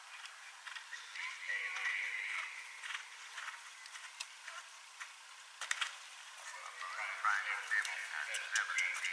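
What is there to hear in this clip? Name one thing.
A horse's hooves thud on grass as it canters.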